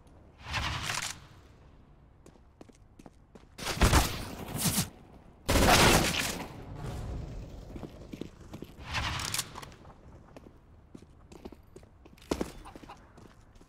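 Gunfire rattles in short, loud bursts.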